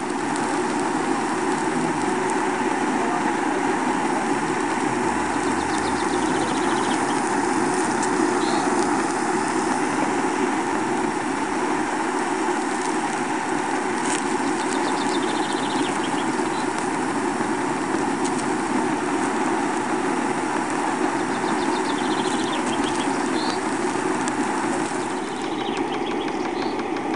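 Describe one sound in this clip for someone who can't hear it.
Metal parts of a small steam engine click and tick as the engine turns.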